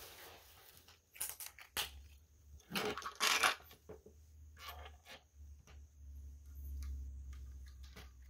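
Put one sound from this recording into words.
Plastic toy bricks click and clack as hands handle them.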